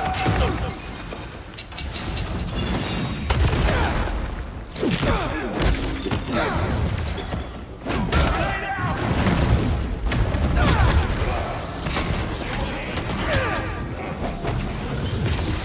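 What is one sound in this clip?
Metal weapons clash and strike in a fast fight.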